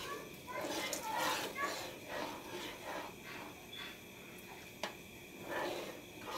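A spoon stirs and scrapes through thick soup in a pan.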